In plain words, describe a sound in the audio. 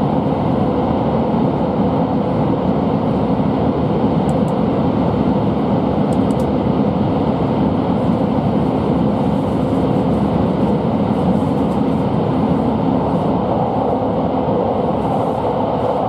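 A moving train rumbles steadily from inside the carriage.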